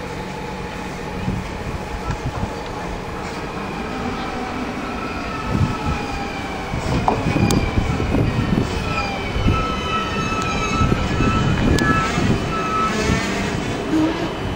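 Train brakes squeal with high, gliding tones.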